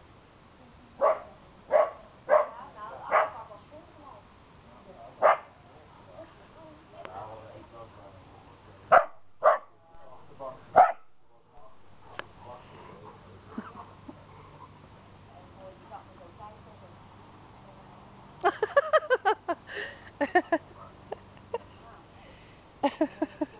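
Dogs bark loudly in short bursts outdoors.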